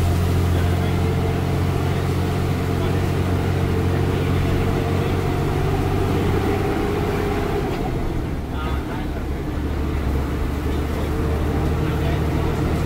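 A bus engine rumbles steadily, shifting pitch as the bus drives along.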